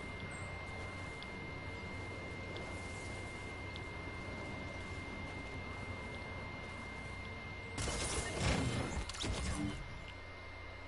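Lightning crackles and rumbles.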